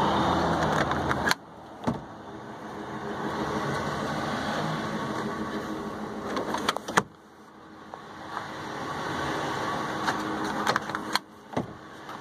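A seat latch clicks as a car seat is folded.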